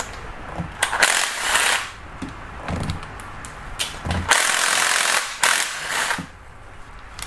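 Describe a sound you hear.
A power ratchet whirs in short bursts.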